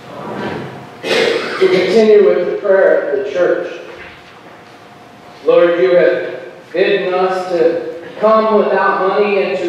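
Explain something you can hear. A congregation sings together.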